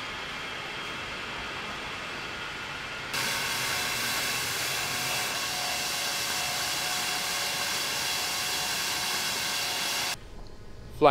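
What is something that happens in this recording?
A bottling machine whirs steadily.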